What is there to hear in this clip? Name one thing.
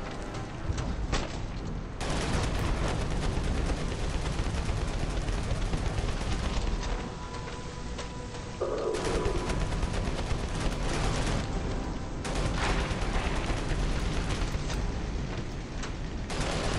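Guns fire rapidly in bursts.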